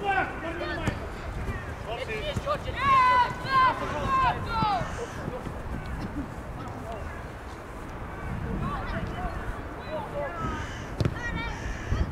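A football thuds when kicked.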